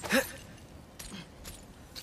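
A metal chain rattles as it is grabbed.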